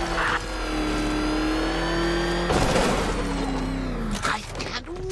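A powerful car engine roars steadily as the car speeds along, then cuts off.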